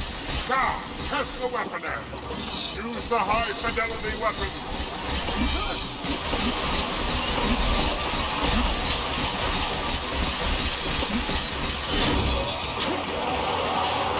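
Energy weapons fire in rapid crackling bursts.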